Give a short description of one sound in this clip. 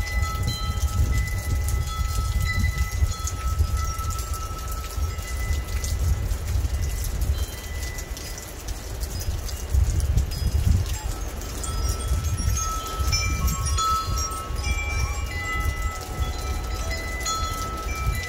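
Wind gusts outdoors, rumbling low.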